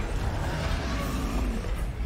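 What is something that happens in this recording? A troll roars loudly.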